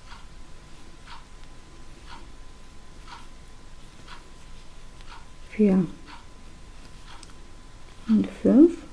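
A crochet hook softly rustles through yarn.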